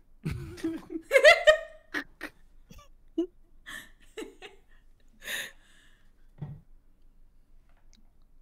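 A young woman laughs close to a microphone.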